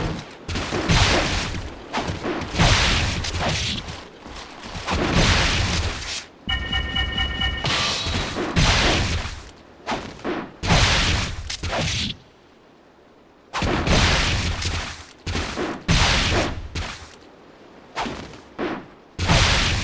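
Swords clash and strike with sharp, heavy impacts.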